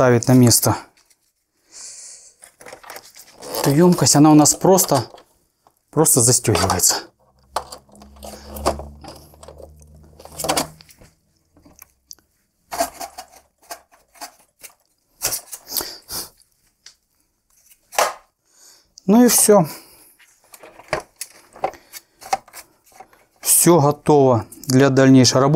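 Plastic parts of a machine click and rattle as hands take them apart.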